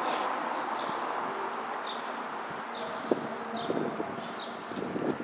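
City traffic hums steadily in the distance outdoors.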